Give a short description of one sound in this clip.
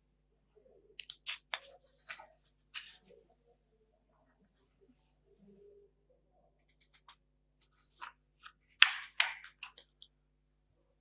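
Paper sheets rustle and flap as pages are turned.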